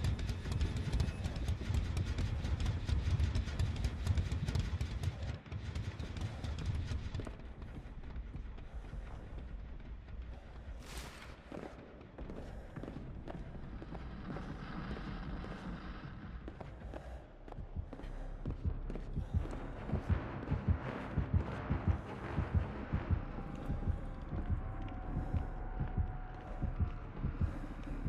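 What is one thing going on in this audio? Footsteps run over hard floors and creaking wooden boards.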